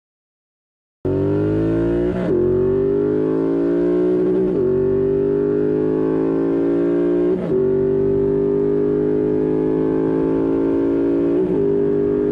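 A motorcycle engine roars loudly, rising in pitch as it accelerates through the gears.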